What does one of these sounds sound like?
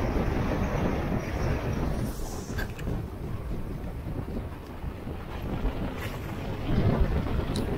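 Water rushes and splashes along a moving boat's hull.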